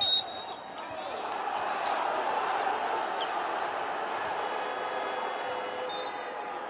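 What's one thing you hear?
A crowd roars loudly in a large arena.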